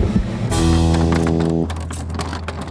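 A toy machine hoots with a loud, steady horn.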